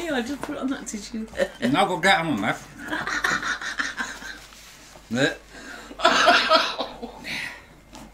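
A woman laughs close by.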